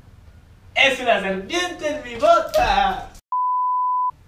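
A young man talks, close by.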